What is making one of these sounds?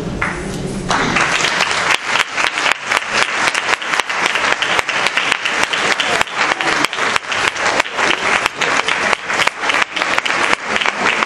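A folk string ensemble plays dance music.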